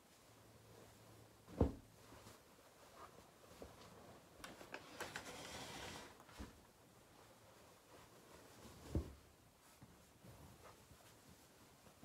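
Fabric rustles and flaps as a quilt is unfolded and shaken out.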